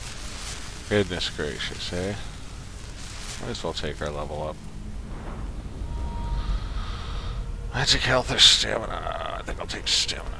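A game menu opens with soft whooshing sounds.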